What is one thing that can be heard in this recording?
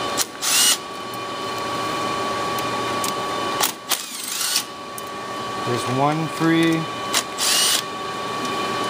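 A cordless drill whirs in short bursts, driving screws into metal.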